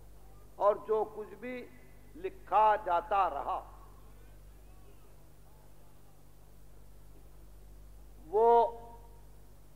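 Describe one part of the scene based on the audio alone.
An elderly man speaks with animation through an old, hissy recording.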